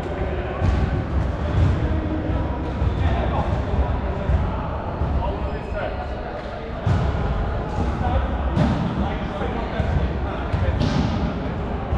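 A volleyball thumps off a player's hands.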